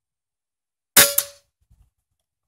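A rifle fires a single sharp shot close by.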